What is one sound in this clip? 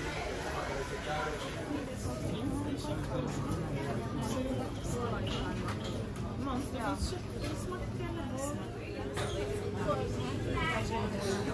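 A crowd of men and women chat nearby.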